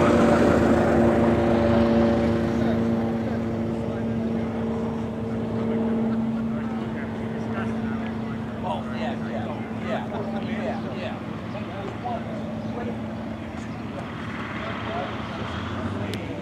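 A propeller plane's engine drones steadily overhead.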